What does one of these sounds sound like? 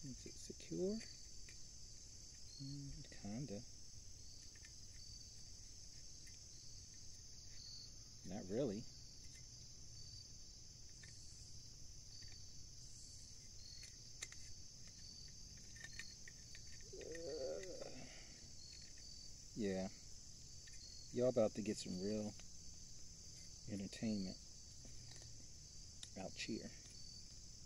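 Small plastic parts click and rattle in a man's hands.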